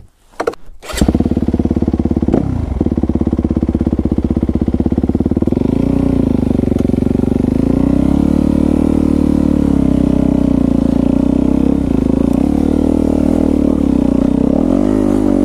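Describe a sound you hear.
A four-stroke dirt bike engine starts and runs while riding along a dirt trail.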